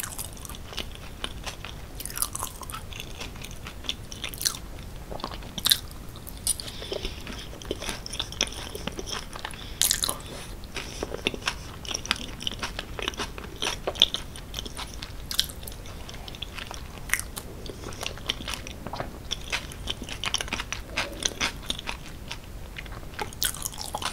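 A fork scrapes and clinks against a glass bowl.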